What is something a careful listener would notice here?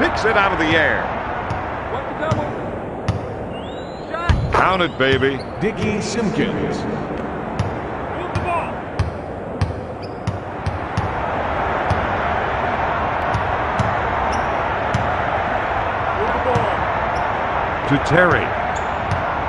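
A basketball bounces on a hardwood floor in steady dribbles.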